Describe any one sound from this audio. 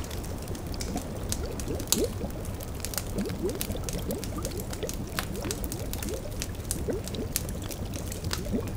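A fire crackles and pops steadily.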